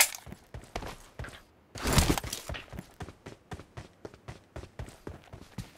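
Quick footsteps thud on the ground as a figure runs.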